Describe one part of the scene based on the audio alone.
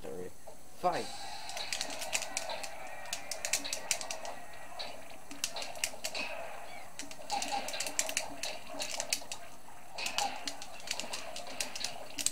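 Boxing punches thump and smack through a television speaker.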